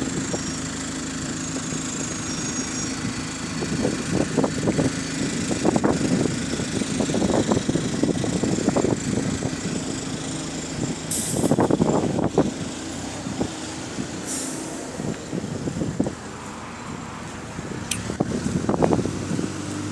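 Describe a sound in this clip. A bus engine rumbles as the bus pulls away and drives off.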